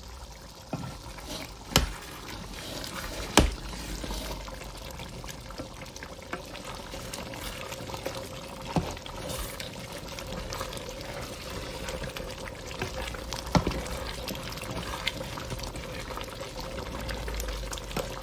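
A wooden spoon scrapes and knocks against a metal pot as it stirs.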